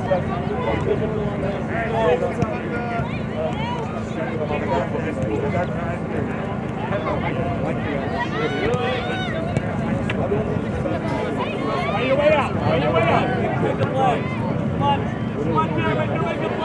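Young women shout and call to each other across an open outdoor field.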